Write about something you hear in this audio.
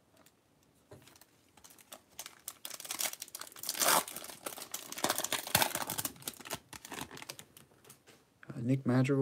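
A plastic wrapper crinkles and tears as it is opened by hand.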